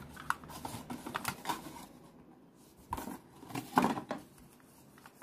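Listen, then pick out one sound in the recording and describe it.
Cardboard rustles as a box is moved.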